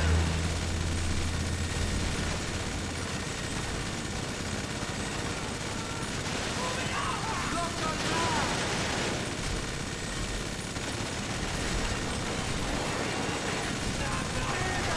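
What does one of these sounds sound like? A machine gun fires rapidly and continuously, echoing in a large enclosed space.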